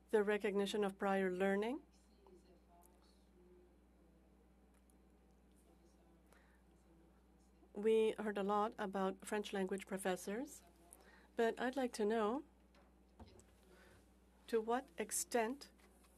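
An older woman speaks calmly into a microphone, pausing between phrases.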